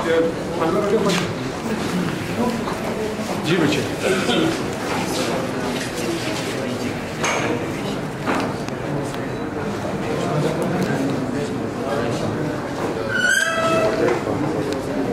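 Several young men talk in low voices close by, in a room with a slight echo.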